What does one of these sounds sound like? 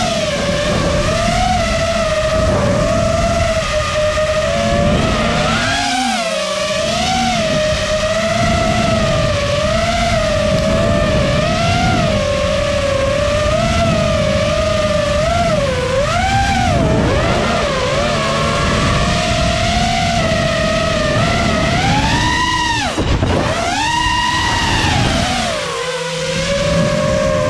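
Wind rushes past a fast-flying quadcopter.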